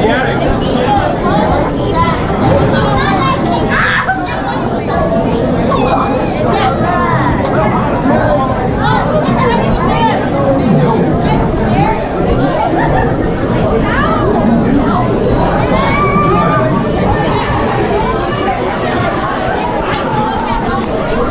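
A large crowd of men and women chatters loudly all around.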